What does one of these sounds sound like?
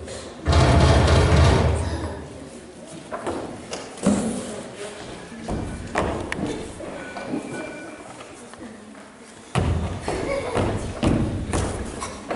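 A child speaks, projecting on a stage, heard from a distance in a hall.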